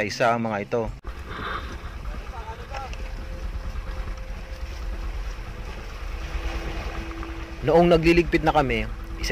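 Waves wash against a moving boat's hull.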